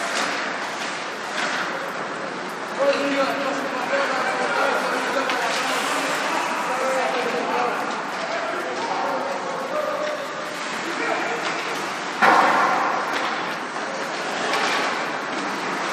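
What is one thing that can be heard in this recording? Men shout and call out across a large echoing rink.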